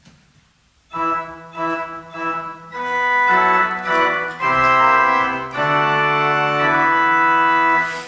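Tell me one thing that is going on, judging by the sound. A choir sings together in a reverberant hall.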